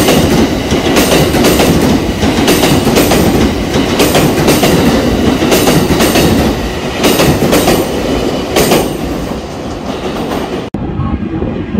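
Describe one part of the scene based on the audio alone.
A train rumbles loudly past on nearby tracks.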